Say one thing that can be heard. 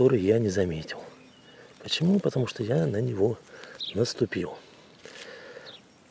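A mushroom stem snaps as a hand pulls it from the moss.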